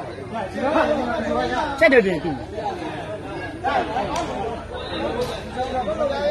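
A crowd of men talks and shouts excitedly outdoors.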